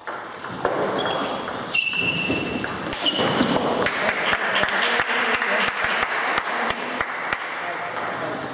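Ping-pong balls click rapidly against paddles and tables in a large echoing hall.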